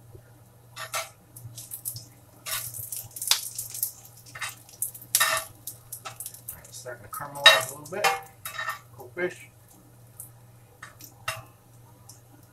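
A metal spatula scrapes and taps in a frying pan.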